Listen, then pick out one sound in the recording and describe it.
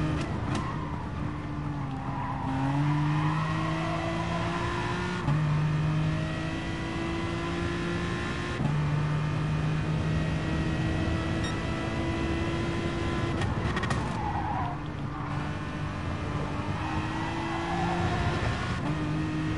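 Tyres squeal through the corners.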